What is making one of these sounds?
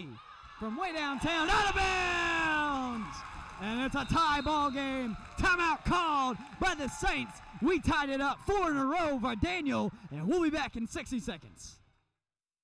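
Young women cheer and shout together.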